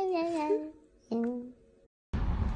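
A cat meows loudly, twice.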